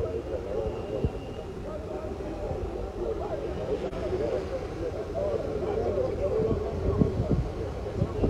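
A crowd of people murmurs and talks outdoors nearby.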